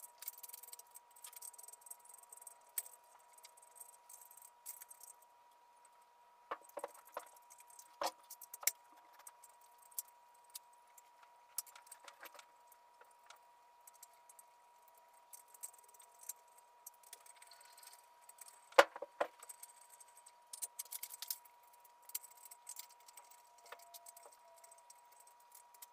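A ratchet wrench clicks on the valve adjusters of an engine cylinder head.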